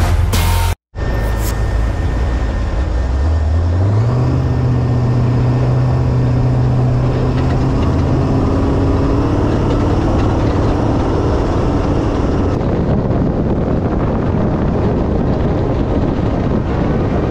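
A vehicle engine rumbles and revs up as it drives off.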